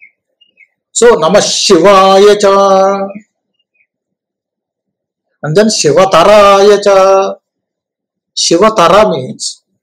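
An elderly man speaks calmly and deliberately over an online call, with pauses between phrases.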